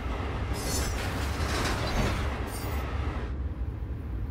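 A passing train rushes by with a loud roar and then falls away.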